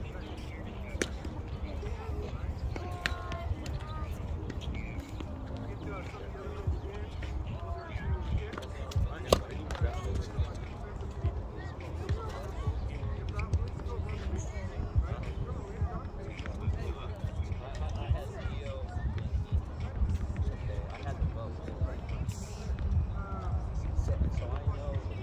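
A tennis racket hits a ball with sharp pops.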